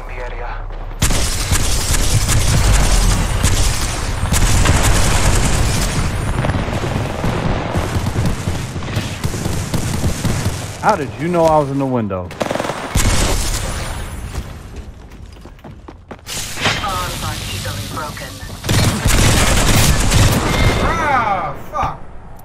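Gunshots rattle in rapid bursts.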